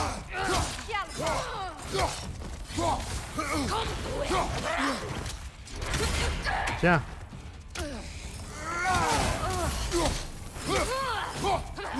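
Heavy blows thud and clang in a fight.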